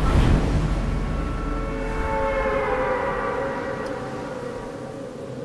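Wind rushes loudly past a falling skydiver, slowly fading.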